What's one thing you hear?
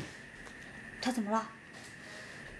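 A young woman asks a short question.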